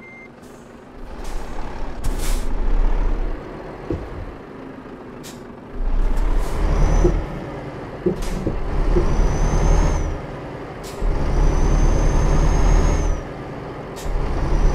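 A truck engine rumbles and revs as the truck drives.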